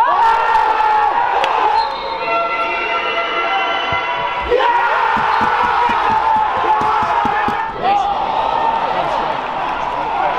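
Men shout to each other during a football match, echoing across an empty stadium.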